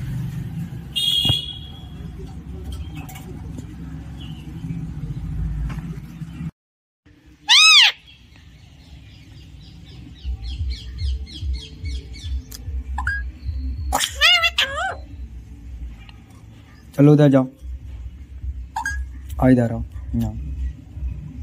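A parrot squawks and whistles in short loud calls close by.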